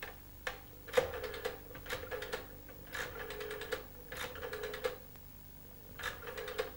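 A middle-aged man speaks quietly into a telephone, close by.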